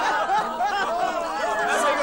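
A bearded man laughs.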